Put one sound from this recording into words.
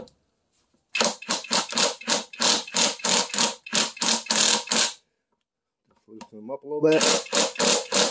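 An impact wrench hammers rapidly on a bolt in bursts.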